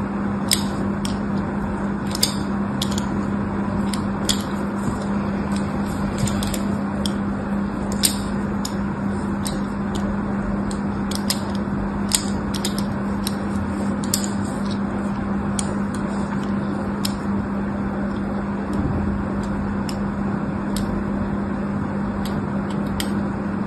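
A blade scrapes and slices into a soft bar of soap with crisp little clicks.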